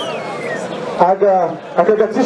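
A young man speaks energetically through a microphone and loudspeaker.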